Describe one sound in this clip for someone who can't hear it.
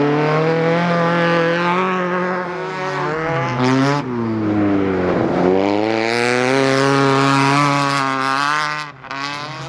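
A rally car engine roars loudly and revs up and down.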